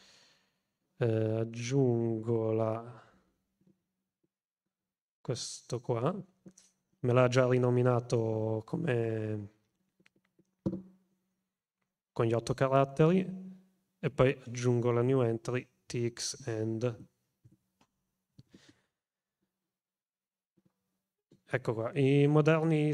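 A man talks calmly into a close microphone, in short phrases with pauses.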